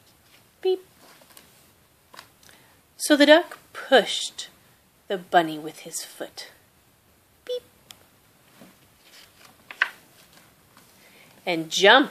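Pages of a book turn with a soft papery rustle.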